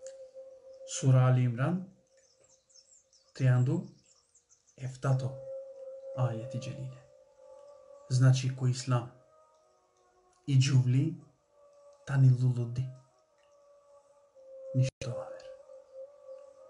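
A man speaks calmly and close up, in short phrases with pauses.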